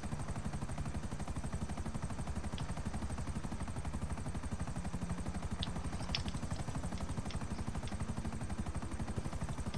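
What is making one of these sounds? Helicopter rotor blades thump rapidly and steadily close by.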